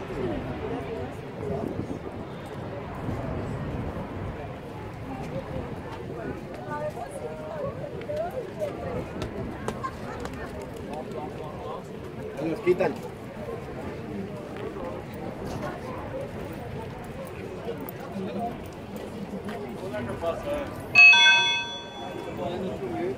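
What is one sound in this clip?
A crowd of people chatter in the open air.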